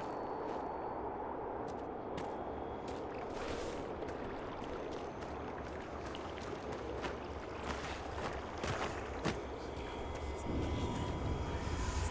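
Footsteps crunch through snow at a quick pace.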